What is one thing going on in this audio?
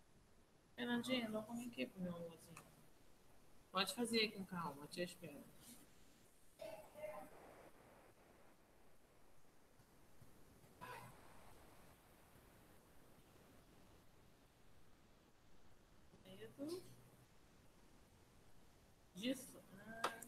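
A woman speaks calmly through a microphone on an online call, with pauses.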